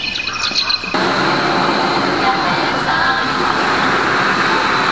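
A fountain splashes and hisses nearby.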